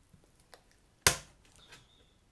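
A box flap thumps against cardboard.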